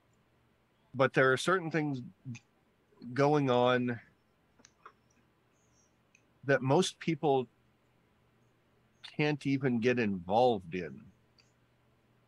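A man speaks through a microphone over an online call, in short bursts.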